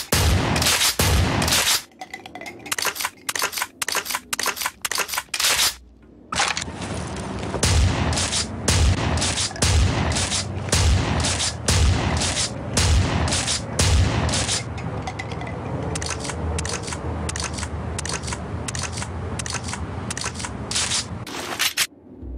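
A shotgun fires in loud, rapid blasts.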